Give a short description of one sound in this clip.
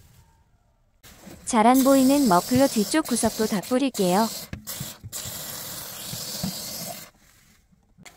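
An aerosol can sprays with a steady hiss.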